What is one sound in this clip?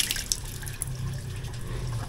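Water splashes into a sink.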